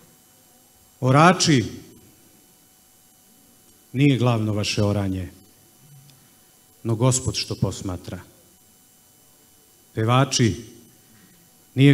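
A man speaks slowly and solemnly into a microphone, in phrases with long pauses.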